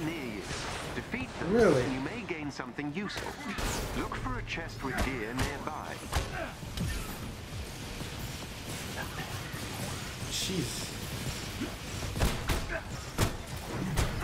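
Energy blasts fire in sharp bursts.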